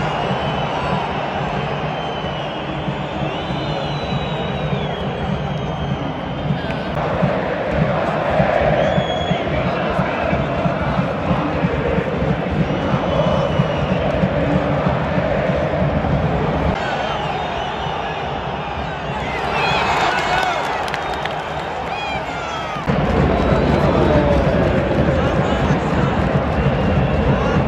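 A large stadium crowd roars and chants loudly, heard from within the stands.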